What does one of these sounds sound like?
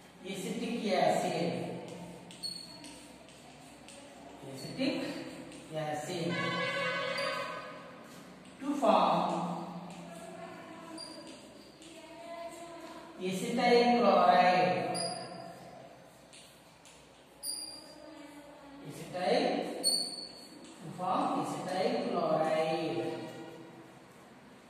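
A man speaks calmly in bursts, as if lecturing, in a room with some echo.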